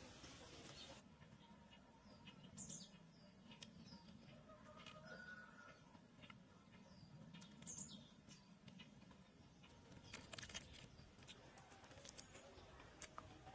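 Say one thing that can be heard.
A woman chews and smacks her lips close by.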